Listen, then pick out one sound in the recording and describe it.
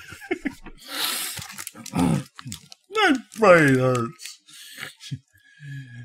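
Packaging crinkles in a man's hands.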